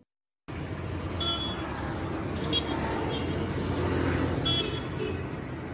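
A motorbike engine drives past.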